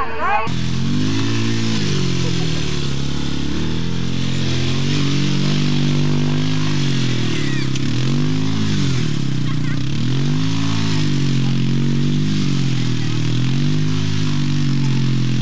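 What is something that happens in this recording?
A small quad bike engine revs up and down as it weaves.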